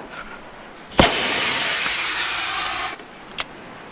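A burning flare hisses loudly, then stops.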